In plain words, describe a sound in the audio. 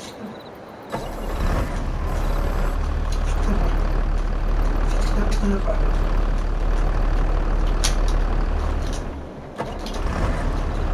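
A tractor engine rumbles steadily at low pitch.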